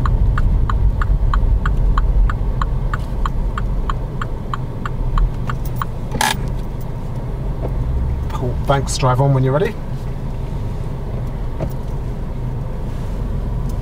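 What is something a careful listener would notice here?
A car engine hums low and steady inside a car.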